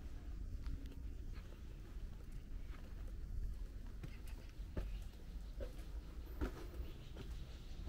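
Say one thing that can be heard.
Footsteps climb concrete steps outdoors.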